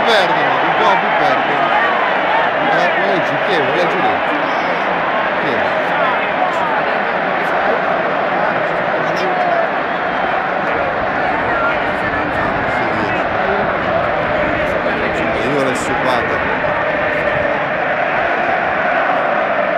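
A large stadium crowd chants and sings loudly in an open echoing space.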